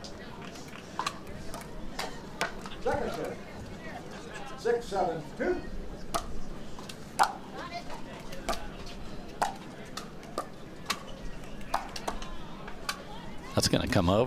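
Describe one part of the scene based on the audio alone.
Paddles pop sharply against a plastic ball in a quick rally.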